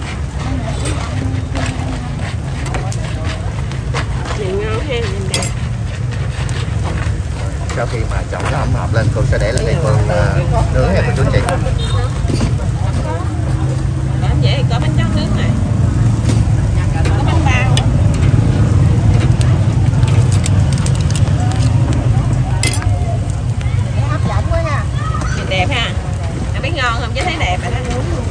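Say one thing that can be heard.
Metal tongs click and scrape against a grill.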